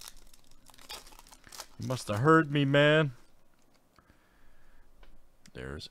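A foil wrapper crinkles and tears as it is ripped open.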